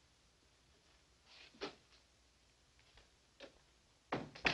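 Footsteps cross a wooden floor.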